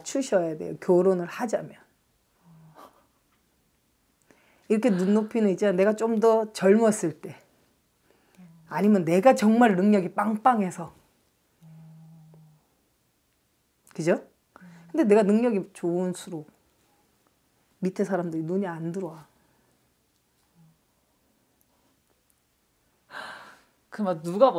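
A middle-aged woman talks with animation into a close microphone, in bursts with pauses.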